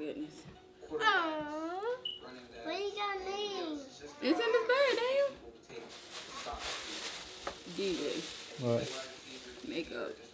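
Young children squeal and talk excitedly nearby.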